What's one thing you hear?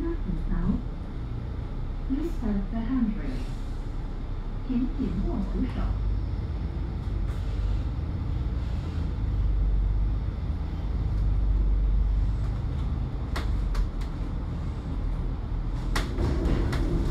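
A vehicle's engine rumbles steadily as it drives.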